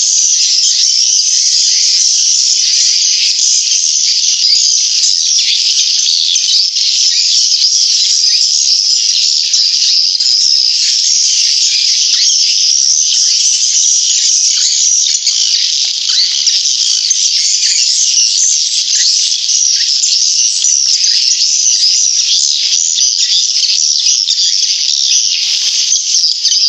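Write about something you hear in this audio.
Small birds chirp and twitter shrilly and rapidly without pause.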